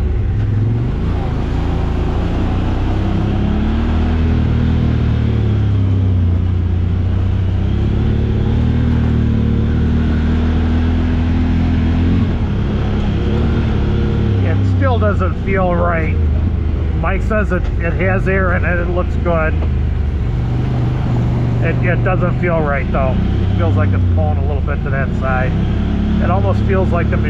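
An off-road vehicle's engine hums and revs steadily up and down.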